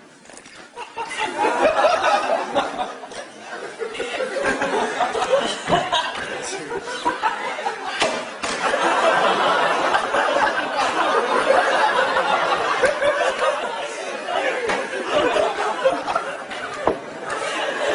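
A crowd of students cheers and laughs in a large hall.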